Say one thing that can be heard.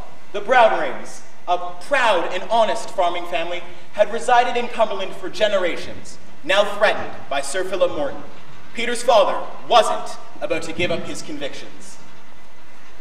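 A young man sings loudly on a stage, in a large echoing hall.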